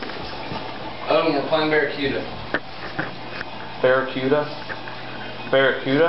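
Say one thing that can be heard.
A young man talks loudly nearby.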